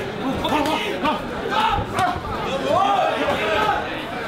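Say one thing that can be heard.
A boxing glove thuds against a body.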